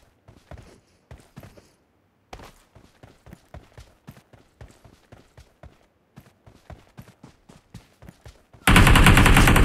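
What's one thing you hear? Footsteps patter quickly over ground and metal.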